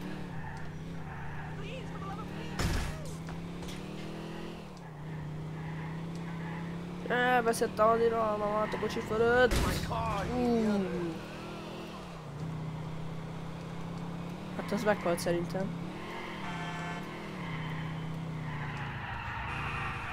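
A car engine hums steadily, rising and falling in pitch as the car speeds up and slows down.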